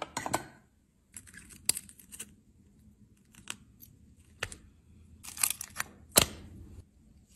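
Pliers snap and crack thin glass.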